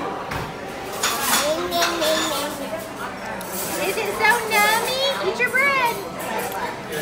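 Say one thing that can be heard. A toddler girl squeals and babbles up close.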